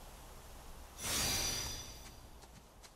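A bright magical whoosh rings out briefly.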